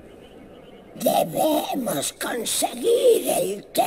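A man speaks in a hoarse, rasping voice close by.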